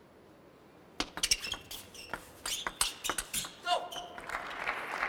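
A table tennis ball clicks sharply back and forth off paddles and a table.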